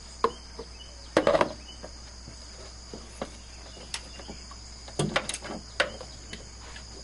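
Metal parts clink and knock together.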